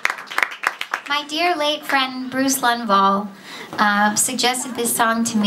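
A young woman speaks calmly into a microphone, heard through loudspeakers.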